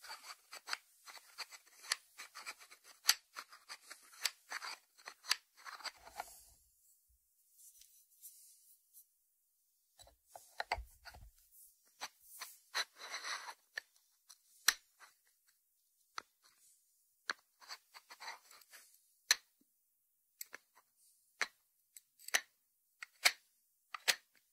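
Fingertips tap on a ceramic dish and its lid.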